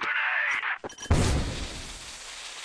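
A grenade bursts with a dull pop.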